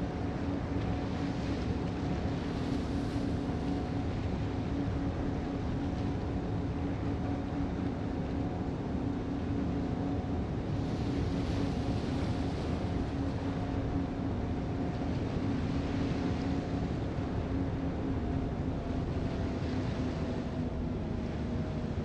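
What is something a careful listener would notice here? Waves splash and rush along a ship's hull.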